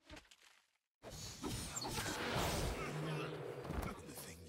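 Sword strikes and spell blasts clash in a fight.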